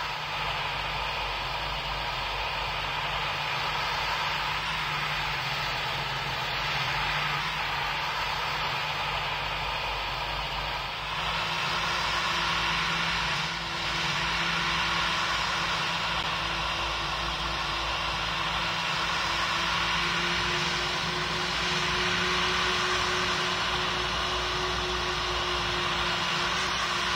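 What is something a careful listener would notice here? Jet engines hum steadily with a high whine.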